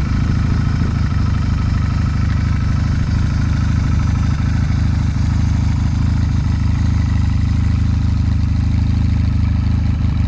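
A motorcycle engine idles with a steady, low, throbbing rumble close by.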